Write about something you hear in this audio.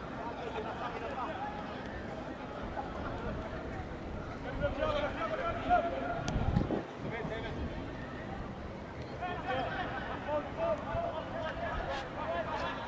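A crowd of spectators chatters and calls out in an open-air stadium.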